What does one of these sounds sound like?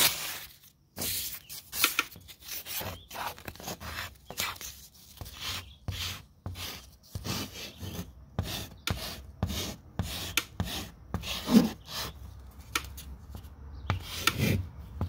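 Chalk scratches across a rough wall in short strokes.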